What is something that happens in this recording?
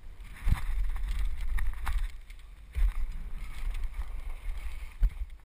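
Bicycle tyres roll and crunch over dry dirt.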